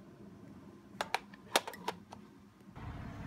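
Telephone buttons click as they are pressed.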